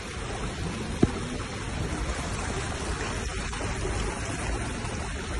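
Heavy rain pours down and splashes on floodwater outdoors.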